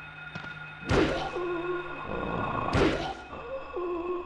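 Heavy blows thud as a metal pipe strikes a creature.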